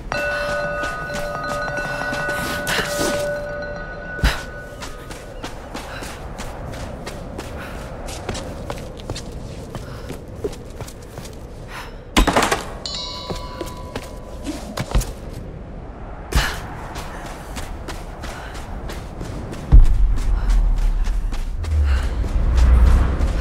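Footsteps crunch quickly over rocky ground.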